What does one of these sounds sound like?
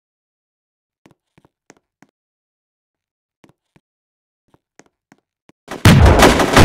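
Footsteps patter lightly on the ground.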